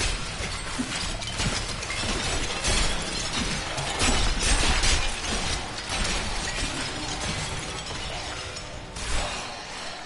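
Weapons slash and clash in a fight.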